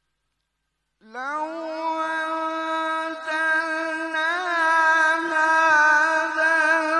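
A man sings long, held notes loudly into a microphone.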